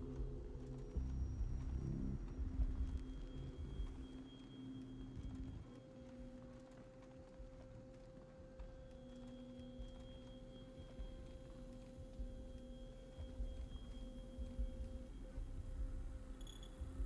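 Footsteps tread softly across a hard floor.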